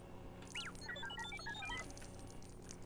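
Small coins chime in quick tinkling notes.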